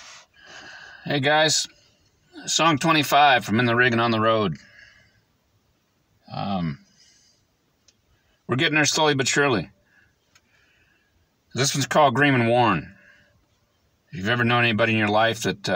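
A middle-aged man speaks calmly up close in short bursts.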